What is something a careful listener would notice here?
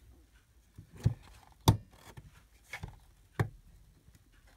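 A paper punch clicks sharply as it is pressed down.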